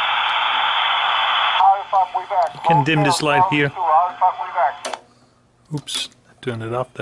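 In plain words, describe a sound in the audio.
A switch clicks on a radio.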